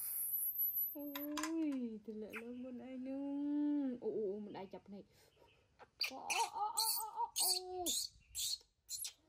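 A baby monkey cries and squeals shrilly close by.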